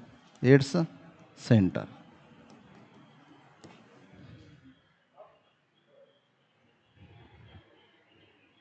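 A man speaks into a microphone, with bursts of loud speech and then quieter talk.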